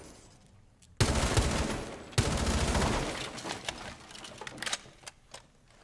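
An explosion booms and rumbles, then fades.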